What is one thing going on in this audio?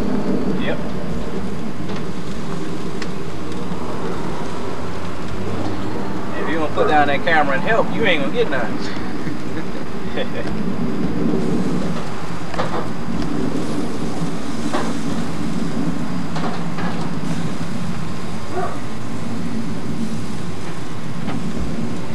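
Metal tongs click against a grill.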